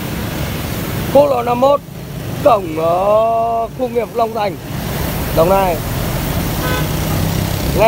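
Motorbike engines hum and drone close by.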